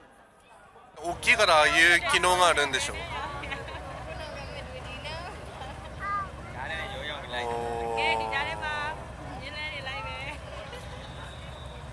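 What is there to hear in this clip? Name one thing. A crowd of men and women shout and chant loudly outdoors.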